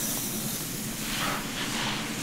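A comb glides through hair close up.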